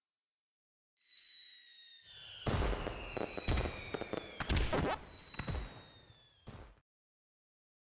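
Fireworks whistle upward and burst with loud bangs.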